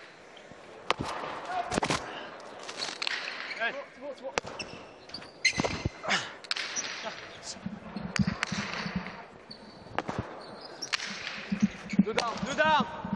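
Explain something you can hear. A hard ball cracks sharply off a wall and floor in a large echoing hall.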